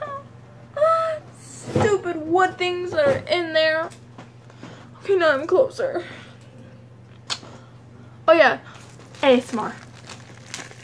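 A young girl talks close to the microphone with animation, in bursts.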